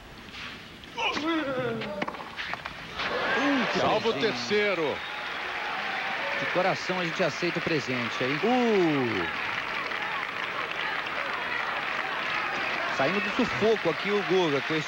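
A crowd applauds and cheers loudly.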